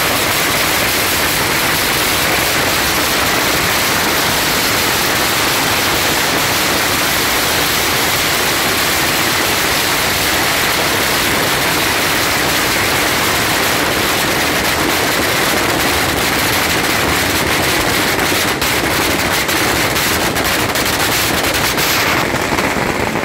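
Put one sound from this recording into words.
Firecrackers crackle and pop in a dense, rapid barrage close by.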